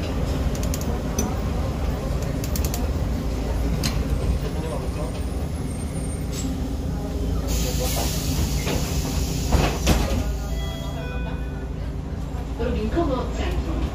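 A diesel city bus engine drones as the bus drives, heard from inside.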